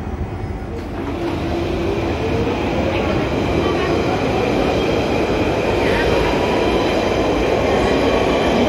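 An electric train hums and whines as its motors rise in pitch while pulling away.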